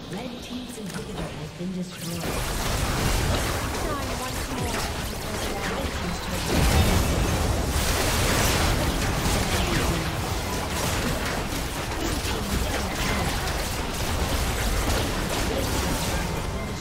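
Video game battle effects crash and whoosh as spells and attacks hit.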